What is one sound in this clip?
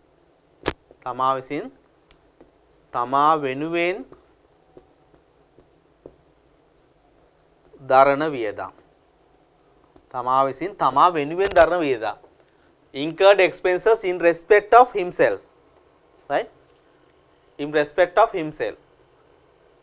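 A man speaks calmly and clearly, as if lecturing, with pauses between phrases.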